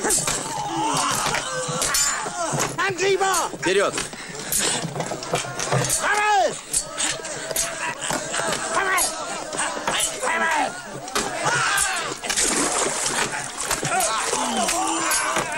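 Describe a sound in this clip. Wooden shields knock and clatter.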